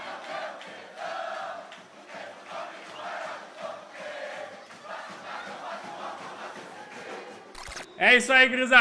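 A crowd chants and cheers loudly.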